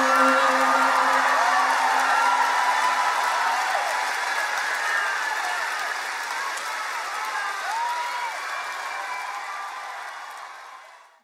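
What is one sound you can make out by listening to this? A large crowd cheers and screams in a big echoing hall, slowly fading away.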